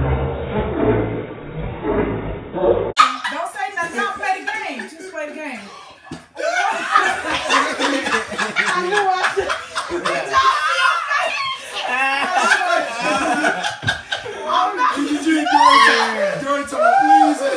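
Several young people laugh loudly nearby.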